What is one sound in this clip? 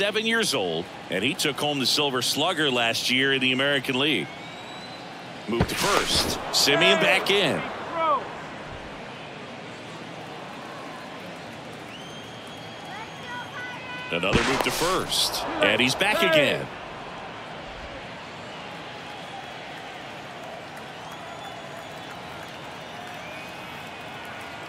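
A crowd murmurs in a large stadium.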